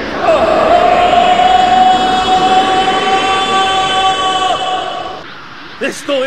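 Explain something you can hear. A young man screams loudly and at length.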